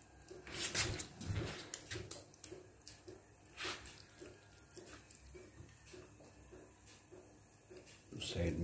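Hands squish and slap wet meat.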